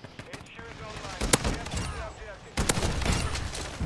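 An explosion booms with a crackle of flames.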